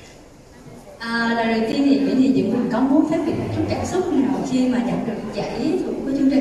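A young woman speaks with animation through a microphone over loudspeakers in a large echoing hall.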